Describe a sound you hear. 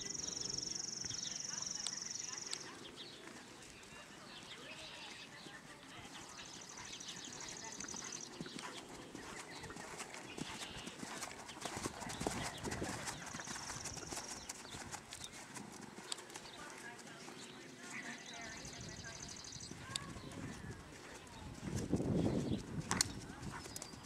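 A horse's hooves thud softly on sand.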